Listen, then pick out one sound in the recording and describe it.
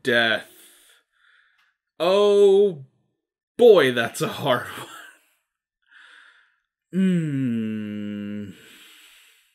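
A young man speaks close into a microphone, drawing out his words playfully.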